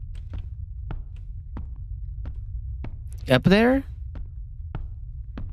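Footsteps tread steadily on stairs.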